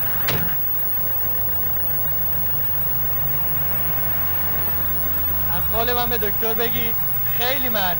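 A minibus engine idles steadily.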